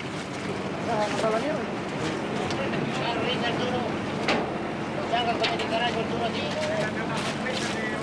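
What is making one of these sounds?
A loaded metal basket clanks and scrapes as it swings.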